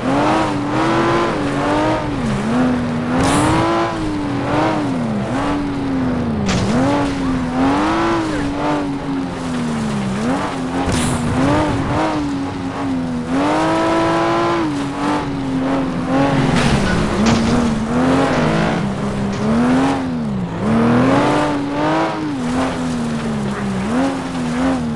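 A rally car engine revs up and down through gear changes.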